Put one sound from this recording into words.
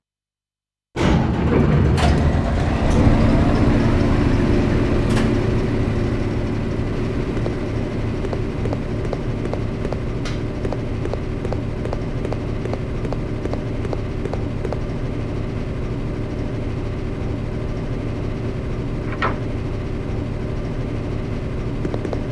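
Heavy machinery starts up and hums steadily.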